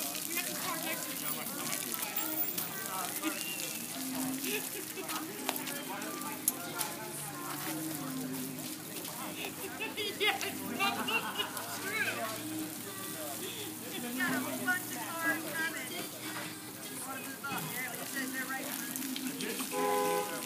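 Wet rags swish and squeak on a car.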